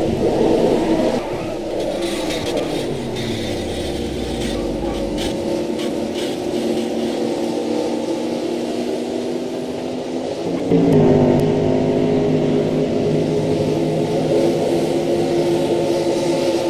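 Truck engines roar at high revs.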